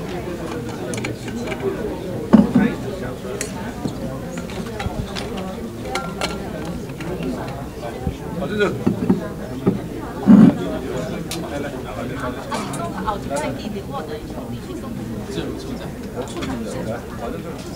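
Many men and women murmur and chatter at once in a large room.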